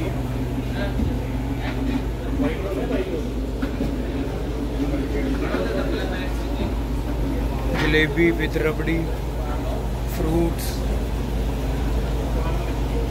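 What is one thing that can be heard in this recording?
A refrigerated display case hums low and steady.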